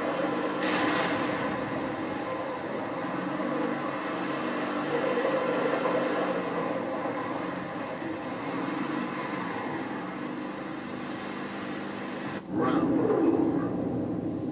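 Video game explosions boom through a television speaker.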